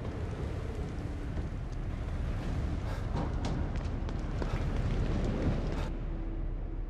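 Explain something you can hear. Footsteps run across a hard stone floor.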